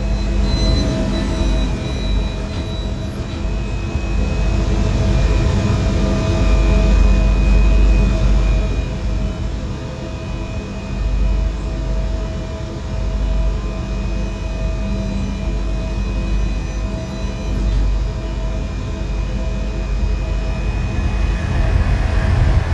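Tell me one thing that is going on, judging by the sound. An electric train idles with a steady low hum and whine.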